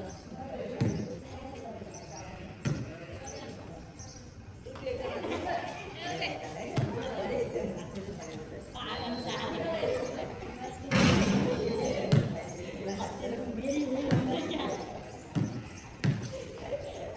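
A ball bounces on hard ground.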